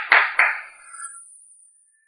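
A stool is set down on the floor with a knock.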